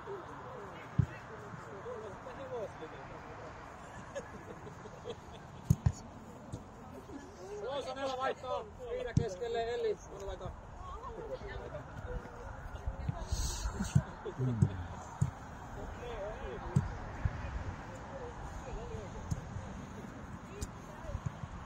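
A football thumps as players kick it.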